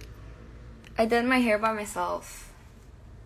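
A young woman speaks playfully close to a phone microphone.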